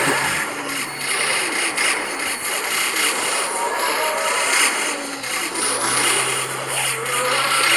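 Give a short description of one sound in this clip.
Game explosions burst with loud booms.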